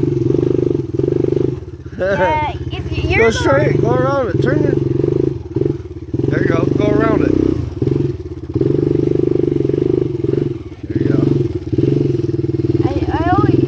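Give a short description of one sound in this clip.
A quad bike engine idles with a steady rumble close by.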